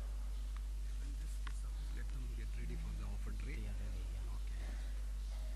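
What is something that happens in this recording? Men murmur softly to each other nearby.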